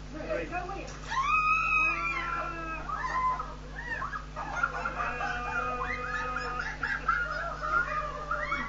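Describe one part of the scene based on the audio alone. Water splashes down as buckets are poured over people.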